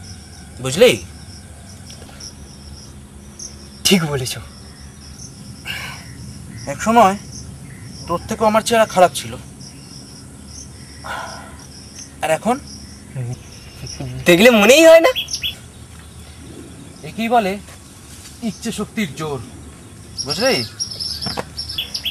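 A man speaks loudly nearby.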